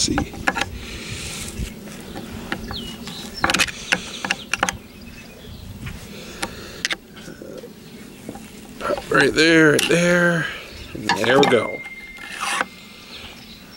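Metal tools scrape and click against a metal ring.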